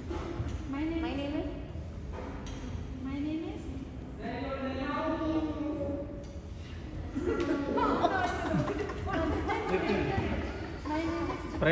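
A young girl speaks into a microphone, with animation.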